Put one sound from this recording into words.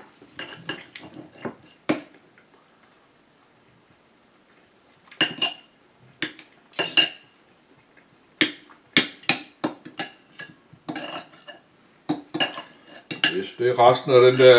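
Cutlery clinks and scrapes against a plate.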